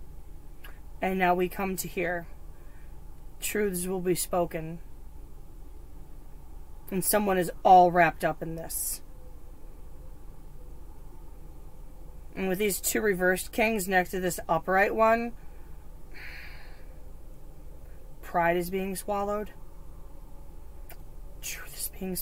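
A young woman talks calmly into a nearby microphone, in short bursts with pauses.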